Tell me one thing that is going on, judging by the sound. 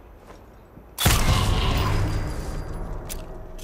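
A silenced pistol fires a single muffled shot with a short echo.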